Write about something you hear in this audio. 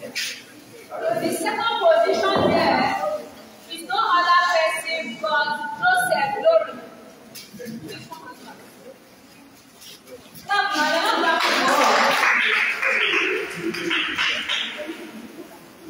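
A woman reads out loudly and clearly nearby.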